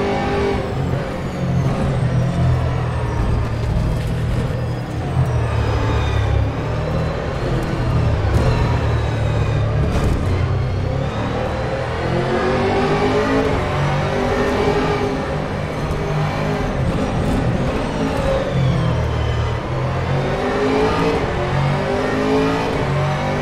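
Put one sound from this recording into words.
A racing car engine roars loudly, rising and falling in pitch as it revs through the gears.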